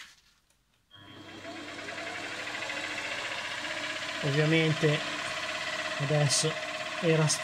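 A milling machine spindle whirs up to speed and runs with a steady whine.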